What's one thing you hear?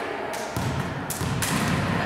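Teenage girls slap hands together in high fives.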